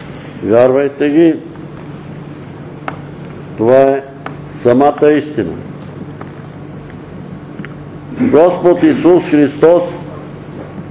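An elderly man speaks slowly through a microphone in an echoing room, with long pauses.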